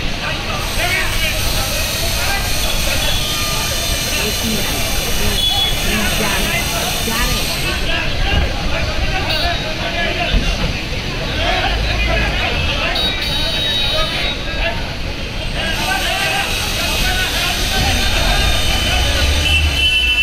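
A crowd murmurs and chatters below.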